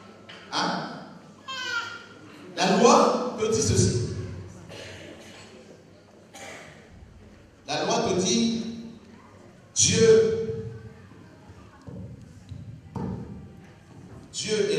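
A man speaks with animation into a microphone in a reverberant hall.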